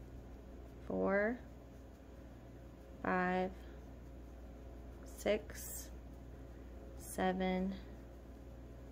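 A crochet hook softly rubs and pulls through yarn.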